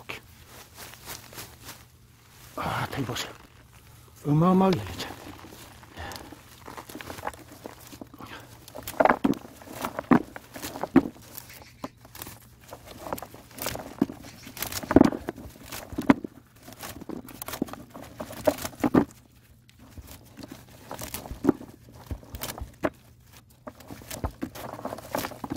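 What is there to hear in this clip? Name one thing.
Peanut pods are pulled off leafy plants by hand with a rustle.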